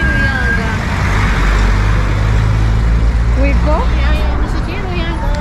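A bus engine roars as it passes close by.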